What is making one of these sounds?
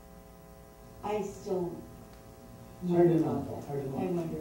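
A woman reads aloud into a microphone.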